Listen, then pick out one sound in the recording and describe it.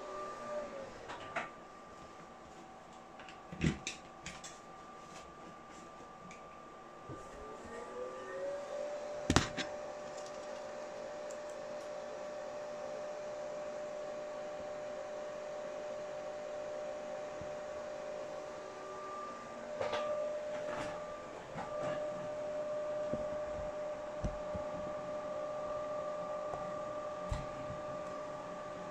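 Computer cooling fans whir with a steady, high hum that rises in pitch and then holds.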